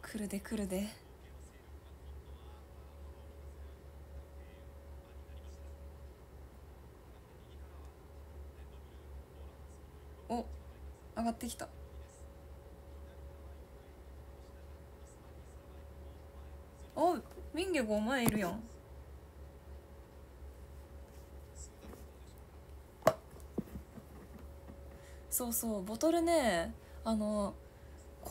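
A young woman speaks softly and close by, in short bursts with long pauses.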